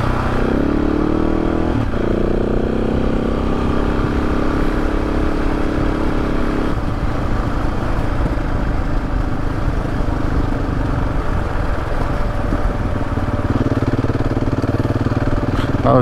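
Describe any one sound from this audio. A motorcycle engine hums steadily and shifts in pitch as it rides.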